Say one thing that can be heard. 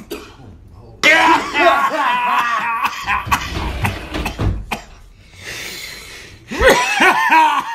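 A middle-aged man laughs loudly up close.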